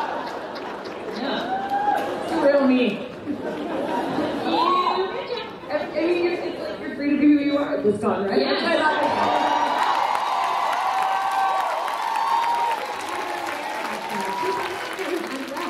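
A young woman talks with animation through a microphone in a large hall.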